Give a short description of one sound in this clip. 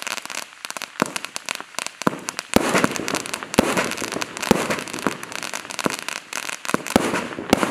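Firework shells burst overhead with sharp bangs and crackles.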